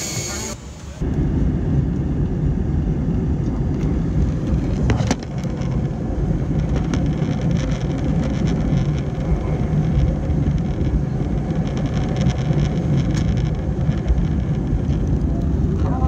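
A jet airliner's engines roar loudly and steadily from inside the cabin.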